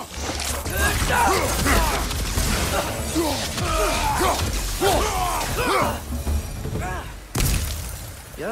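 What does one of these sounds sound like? A heavy axe swings and strikes with loud impacts.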